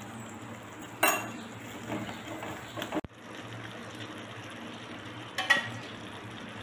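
A metal spoon clinks against a ceramic cup.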